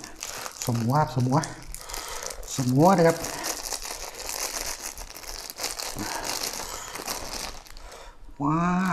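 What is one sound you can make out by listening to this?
Plastic wrapping crinkles as hands tear it open.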